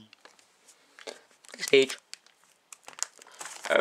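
A plastic binder page rustles as it is turned.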